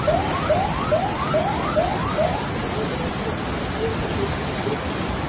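Floodwater rushes and roars steadily, outdoors.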